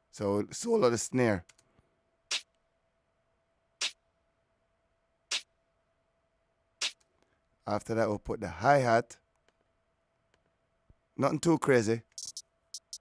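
A man speaks briefly into a close microphone, with pauses.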